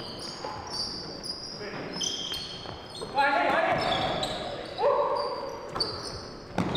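Sneakers squeak sharply on a wooden floor in an echoing gym.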